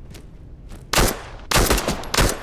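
Loud gunshots crack and echo in quick succession.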